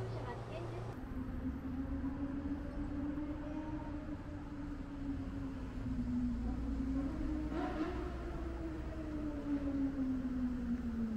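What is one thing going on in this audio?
Traffic passes by on a street outdoors.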